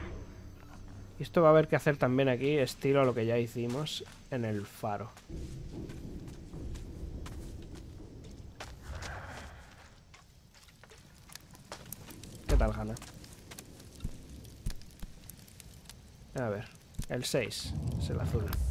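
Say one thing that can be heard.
Footsteps crunch softly on dirt and grass.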